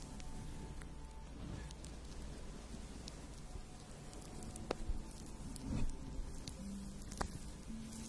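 A wooden spoon brushes and taps softly against a fuzzy microphone cover, close up.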